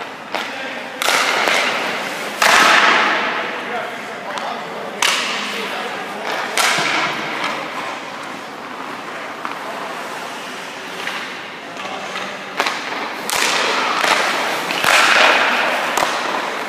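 A puck smacks against a goalie's pads.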